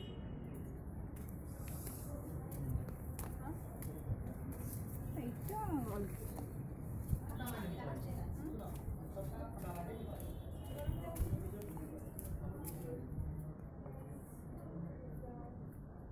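Footsteps tap on stone stairs.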